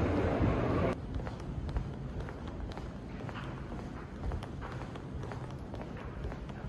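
Footsteps tap on a hard floor in a quiet, echoing corridor.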